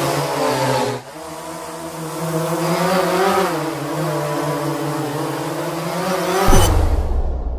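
A drone's propellers whir steadily as it hovers close by.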